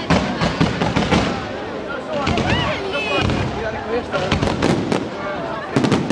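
A crowd of people chatters and cheers nearby.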